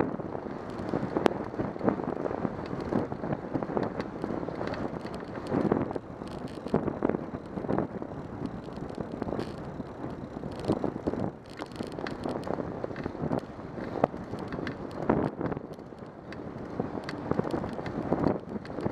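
Wind buffets the microphone in gusts.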